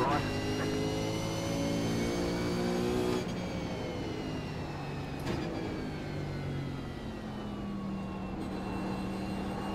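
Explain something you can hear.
A racing car engine roars at high revs, drops as it slows for a corner, then climbs again.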